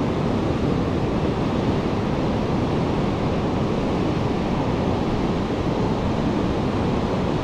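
Ocean waves wash onto a beach.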